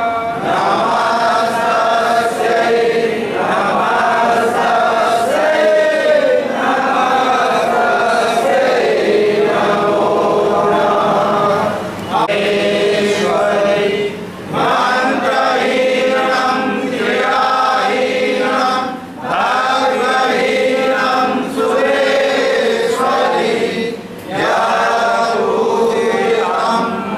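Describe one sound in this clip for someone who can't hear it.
A crowd of worshippers sings a devotional chant together in an echoing hall.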